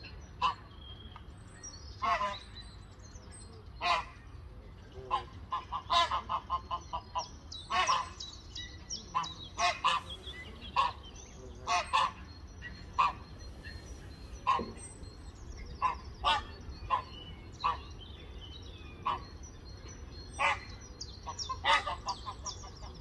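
Geese call out repeatedly nearby, outdoors by the water.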